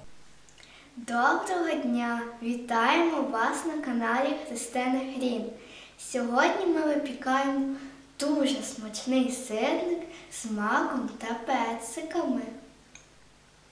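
A young girl speaks cheerfully and close by.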